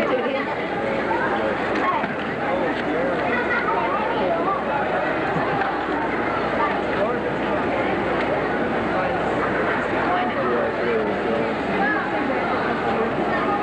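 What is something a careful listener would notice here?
A large crowd chatters and murmurs throughout in a big hall.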